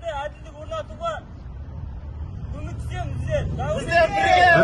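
A man speaks loudly outdoors, close by.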